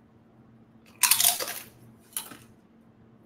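A young woman crunches a chip loudly.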